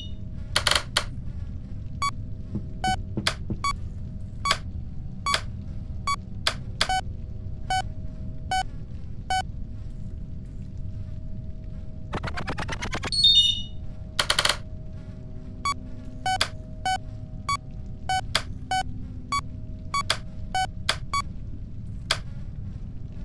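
Game buttons click with short electronic beeps.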